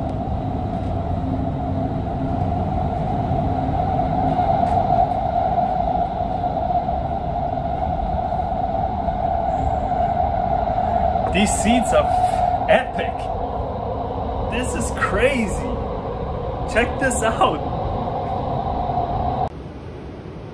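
A train hums and rumbles steadily as it runs through a tunnel.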